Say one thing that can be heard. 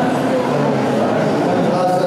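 An older man speaks through a microphone.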